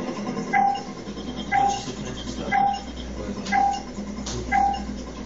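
A short electronic beep sounds once every second, counting down.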